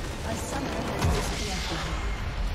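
A large crystal structure explodes with a deep crash.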